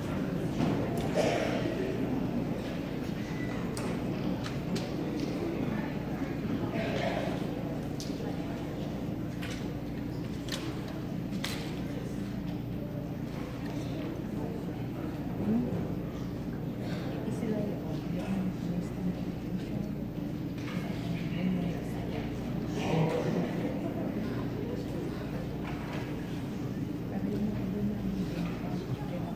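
A large choir sings together in an echoing hall.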